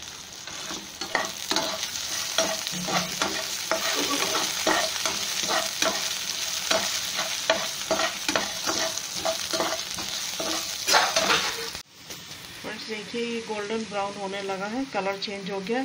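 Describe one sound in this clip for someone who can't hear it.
A metal spatula scrapes and taps against a pan.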